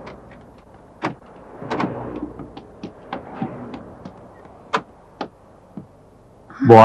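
High heels click on pavement.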